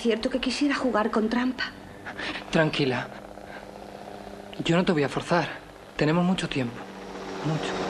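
A young woman speaks softly and emotionally close by.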